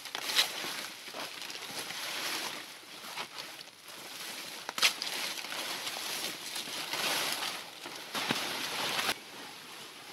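Dry palm leaves rustle and scrape as they are handled.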